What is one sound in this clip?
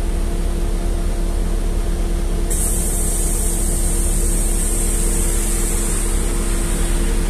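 A vehicle's engine hums steadily from inside.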